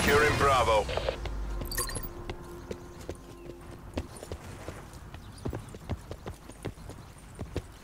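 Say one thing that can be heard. Footsteps thud quickly on a stone pavement.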